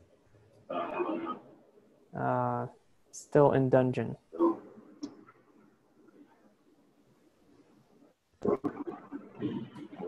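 A young man speaks casually over an online call.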